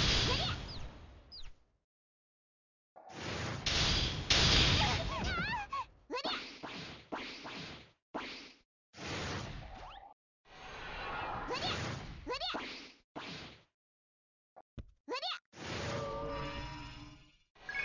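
Fiery magical blasts and slashing hits burst in quick rapid bursts.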